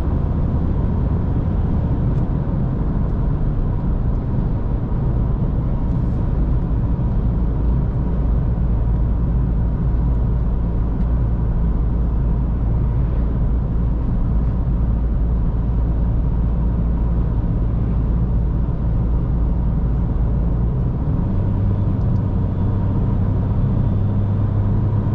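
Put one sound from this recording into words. Tyres roar on an asphalt road.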